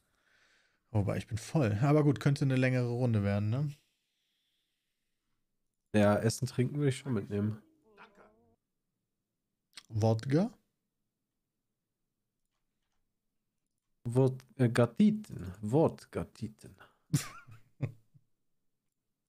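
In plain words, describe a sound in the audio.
A man talks with animation into a close microphone, with pauses.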